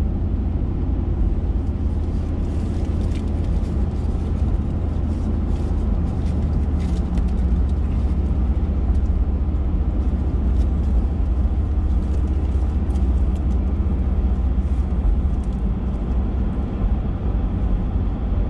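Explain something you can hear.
Raindrops tap lightly on a windshield.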